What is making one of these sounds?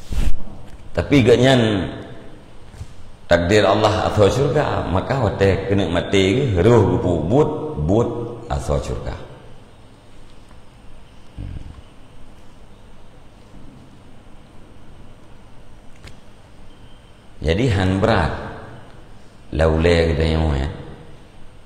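A middle-aged man speaks with animation into a close microphone, pausing now and then.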